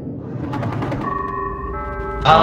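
A short electronic chime sounds in steady tones.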